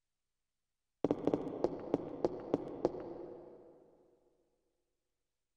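Quick footsteps run across a hard floor and echo in a large hall.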